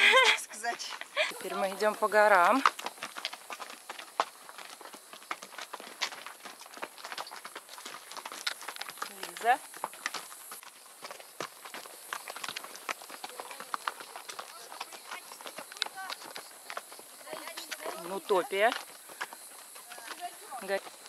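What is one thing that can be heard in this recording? Horse hooves clop on a stony trail.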